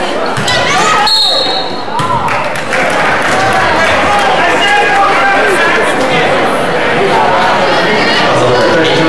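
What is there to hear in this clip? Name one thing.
A crowd of spectators cheers and shouts loudly in an echoing gym.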